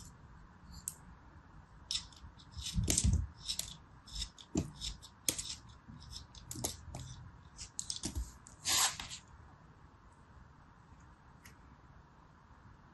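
A knife blade scrapes and cuts through soft modelling clay close up.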